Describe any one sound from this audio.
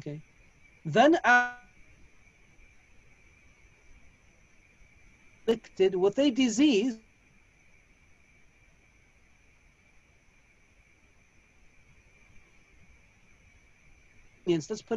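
A man speaks calmly in short bursts through an online call, with long pauses.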